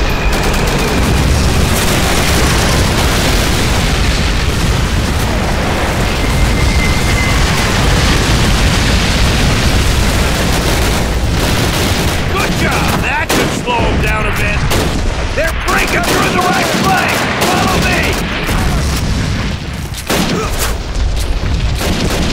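Rifles and machine guns fire in rapid bursts.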